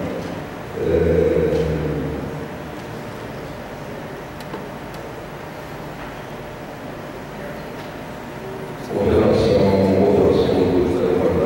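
A man speaks calmly into a microphone, heard over loudspeakers in a large echoing hall.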